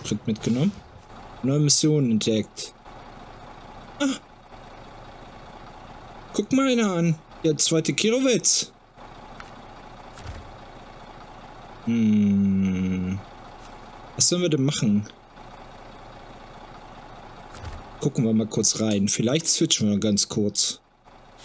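A truck engine idles steadily.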